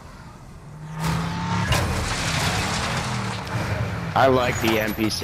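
A truck engine roars.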